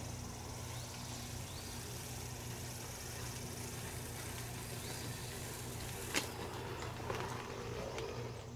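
A push spreader rattles as its wheels roll over grass.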